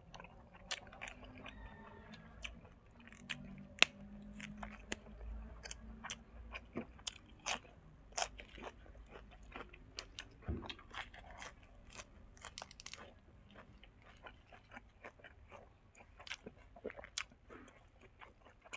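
A young man chews and smacks his lips loudly close by.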